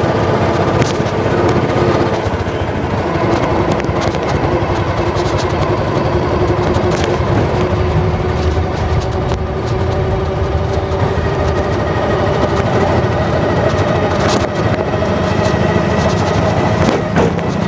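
Tyres rumble steadily on a road.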